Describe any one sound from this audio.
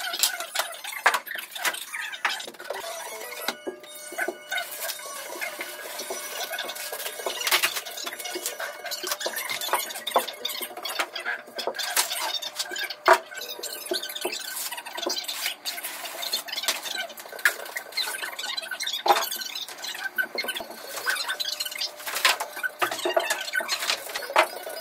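Flat boards thump and knock on a hard floor.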